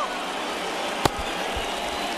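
A bat sharply cracks against a ball.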